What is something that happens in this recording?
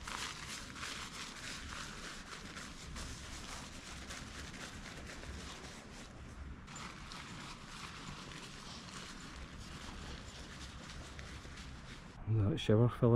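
Tent fabric rustles and flaps.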